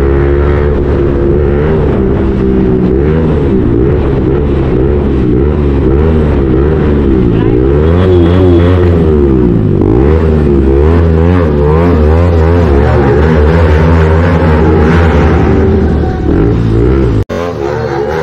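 A motorcycle engine drones and revs up and down close by.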